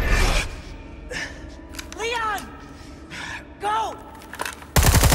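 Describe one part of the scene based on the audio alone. A woman calls out urgently.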